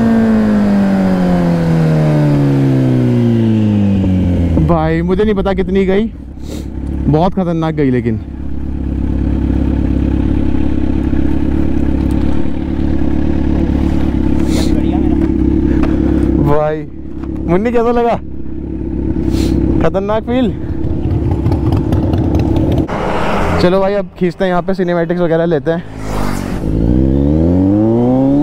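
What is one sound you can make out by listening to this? A motorcycle engine revs up and down with gear changes.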